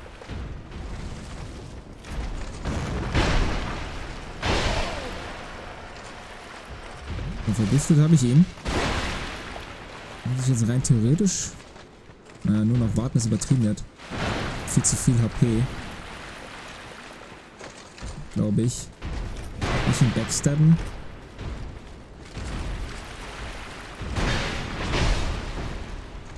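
Heavy weapon blows clang and thud.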